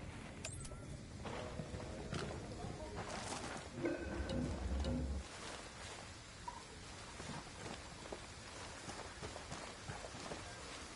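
Footsteps crunch softly on dirt and wooden boards.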